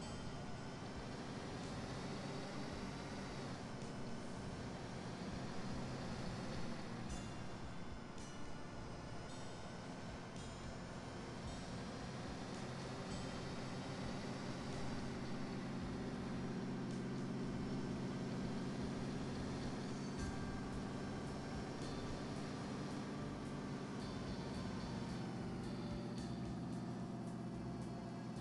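A heavy truck engine drones steadily, rising and falling as it speeds up and slows down.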